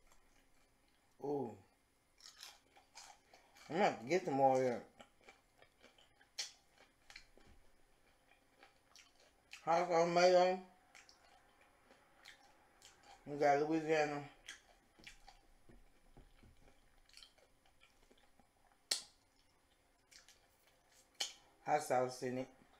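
Crunchy food is chewed and smacked close to a microphone.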